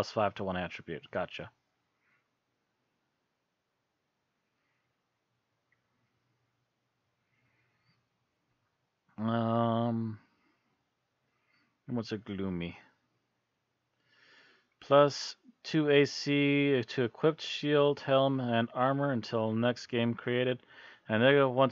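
A man talks with animation close to a headset microphone.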